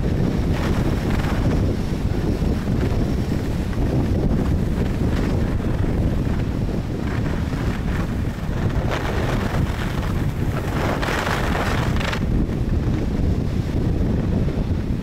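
Wind rushes hard and steadily past.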